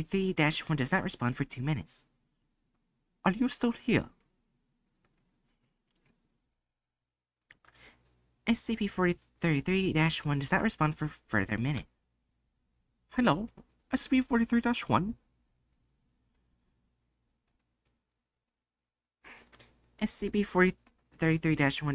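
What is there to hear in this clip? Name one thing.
A young woman reads aloud with animation into a close microphone.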